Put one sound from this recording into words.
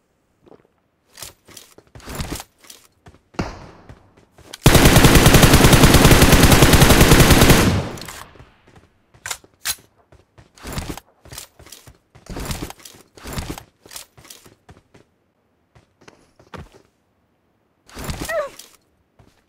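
Footsteps thud on a hard surface.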